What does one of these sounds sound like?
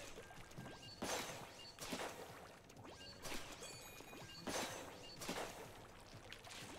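Ink shots burst with wet splats again and again.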